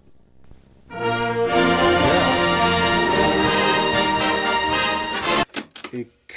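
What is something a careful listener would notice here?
A tape recorder plays music through its speaker.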